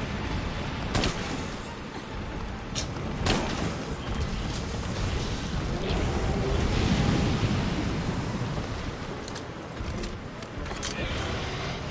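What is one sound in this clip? Sharp blows strike with loud cracks.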